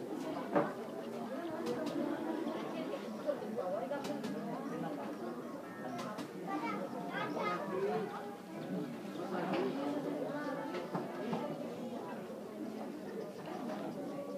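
A crowd of people chatters nearby in the background.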